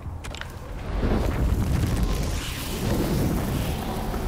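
Flames roar and crackle in a loud burst of fire.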